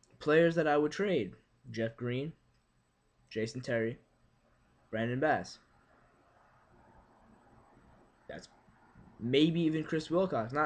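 A young man speaks calmly in short bursts, close to the microphone.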